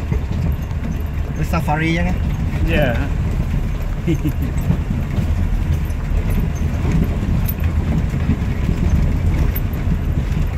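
A vehicle engine rumbles steadily at low speed.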